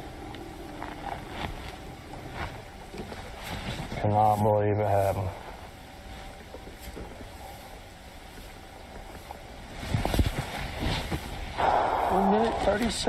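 Water laps softly against a boat hull.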